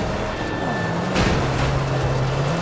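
A loud metallic crash rings out as two cars collide.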